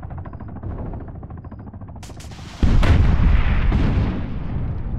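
Flares pop and hiss in the sky.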